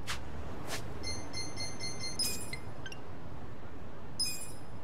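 A menu chimes with a bright jingle.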